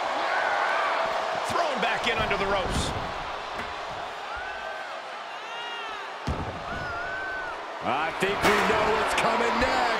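Heavy bodies slam onto a wrestling mat with loud thuds.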